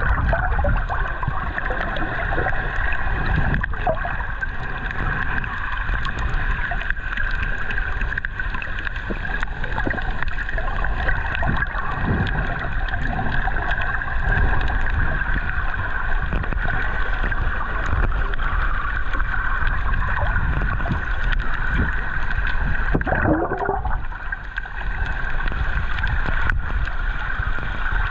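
Water rushes and bubbles in a dull, muffled way underwater.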